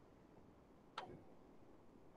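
A glass is set down with a knock.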